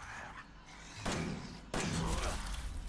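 A pistol fires two loud shots.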